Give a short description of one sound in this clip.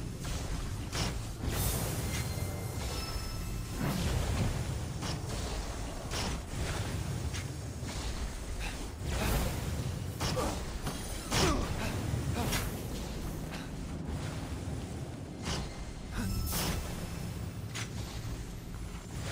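Electric magic crackles and hums in short bursts.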